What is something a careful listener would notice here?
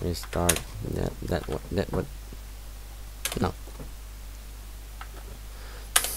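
Short electronic menu clicks sound.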